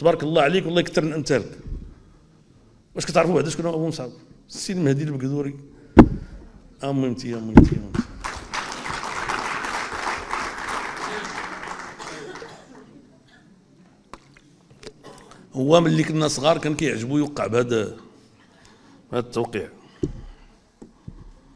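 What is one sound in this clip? A middle-aged man speaks forcefully into a microphone, with pauses.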